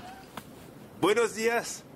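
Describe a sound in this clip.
A young man calls out.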